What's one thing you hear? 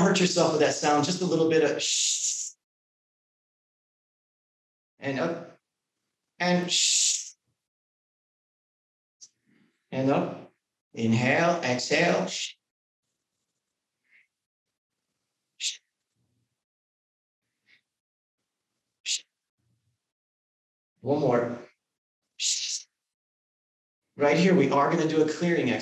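A man speaks calmly in short phrases, close to a microphone, with long pauses between them.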